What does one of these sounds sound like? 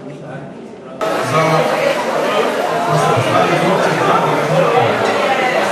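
A crowd of men and women chatters loudly nearby.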